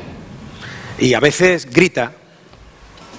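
A woman speaks dramatically through a microphone.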